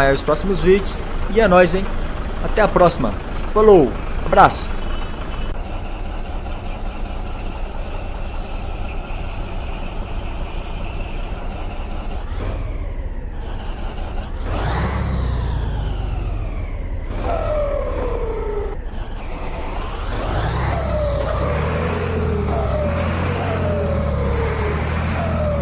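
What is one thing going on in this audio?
A diesel truck engine idles with a low, steady rumble.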